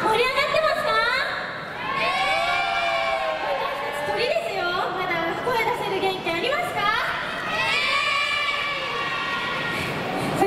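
Young women sing together through microphones over a loudspeaker.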